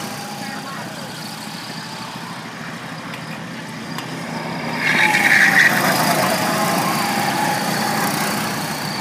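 Small electric model cars whine around a track, their motors rising and falling in pitch.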